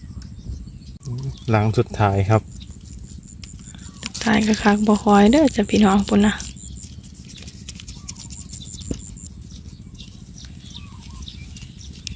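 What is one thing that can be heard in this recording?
Live shrimp patter and flick against a plastic bucket.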